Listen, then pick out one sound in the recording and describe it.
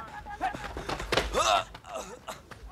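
A young man yells in alarm.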